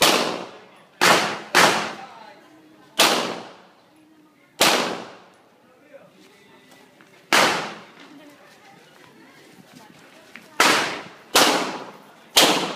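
Pistol shots ring out one after another outdoors, each echoing briefly.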